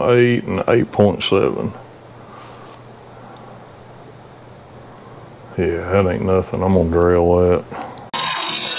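A man speaks calmly, close to a microphone.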